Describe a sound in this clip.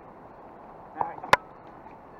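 Water splashes lightly as a hand dips into a river.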